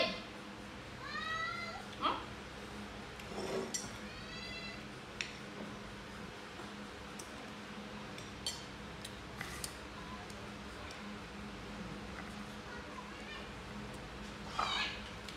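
A young monkey squeaks in short, high chirps.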